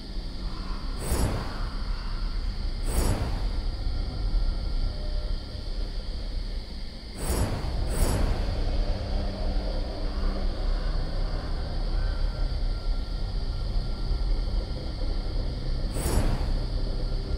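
A magical shimmering whoosh sounds each time an item is collected.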